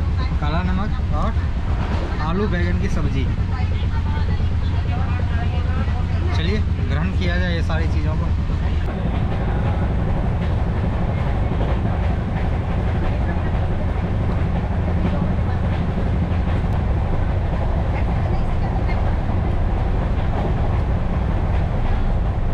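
A train rumbles steadily as it rolls along.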